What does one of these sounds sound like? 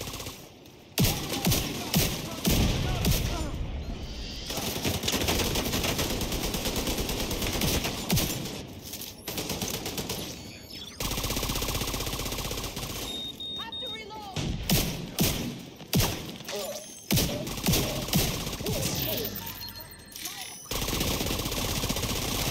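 Guns fire in rapid bursts, with sharp cracks and echoing bangs.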